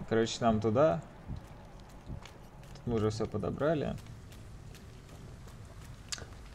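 Footsteps tread on wet pavement.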